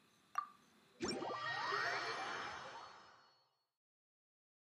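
A whooshing game sound swells and fades.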